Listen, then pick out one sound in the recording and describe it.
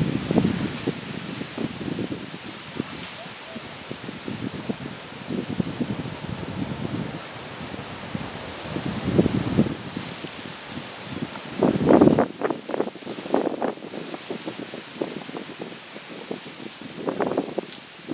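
An elephant pulls up and tears grass with its trunk.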